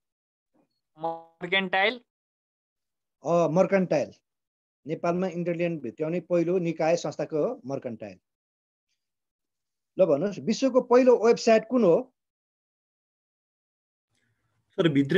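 A middle-aged man speaks calmly over an online call, in short bursts with pauses.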